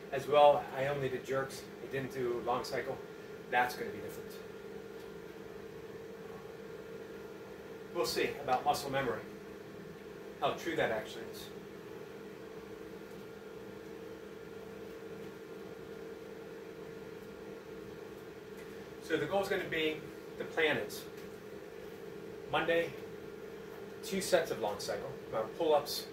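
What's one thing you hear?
A middle-aged man talks calmly close by, in short bursts with pauses.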